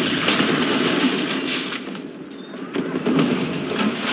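Explosions roar and debris crashes down.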